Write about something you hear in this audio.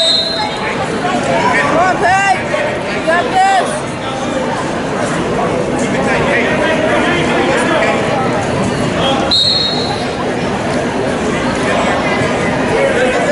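Men and women in the crowd shout loudly to cheer on the wrestlers.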